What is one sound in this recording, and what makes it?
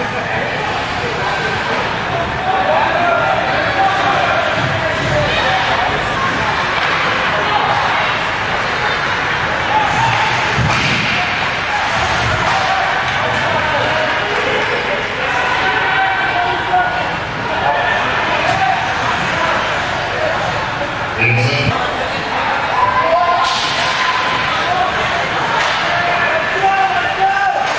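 Skates scrape on the ice.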